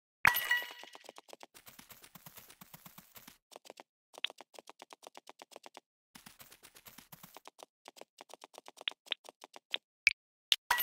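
Blocky footsteps patter quickly and steadily.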